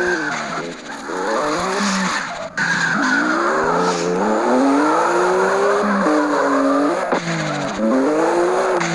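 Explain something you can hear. A car engine revs high, rising and falling in pitch.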